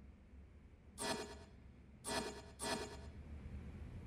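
Short electronic menu chimes sound as a page is turned.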